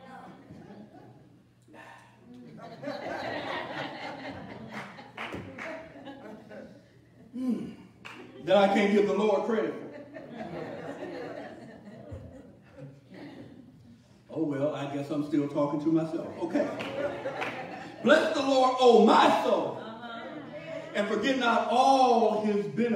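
A man preaches with animation into a microphone in an echoing hall.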